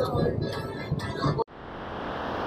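A car drives along a highway with road noise inside the cabin.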